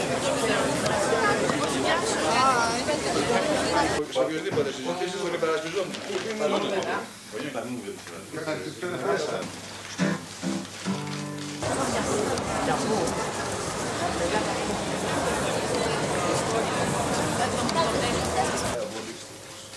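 A crowd chatters outdoors in a busy street.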